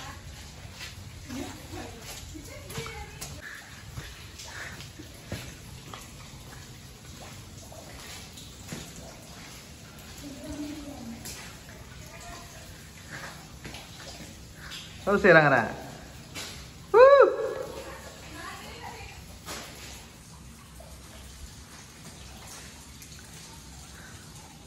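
Water trickles and splashes over rocks.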